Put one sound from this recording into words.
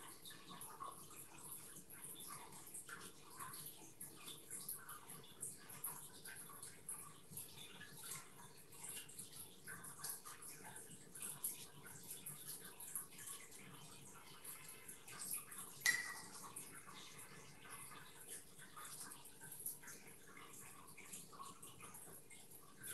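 A brush softly strokes across paper.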